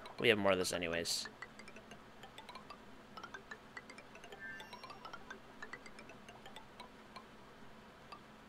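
Short electronic blips climb steadily in pitch as building pieces are placed one after another.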